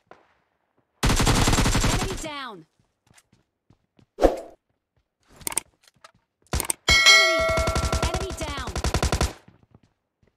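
Rapid gunfire bursts out in short, loud volleys.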